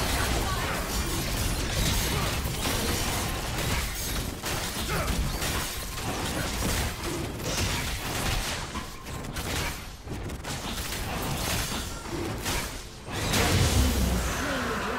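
Game spells and attacks crackle and clash in a fight.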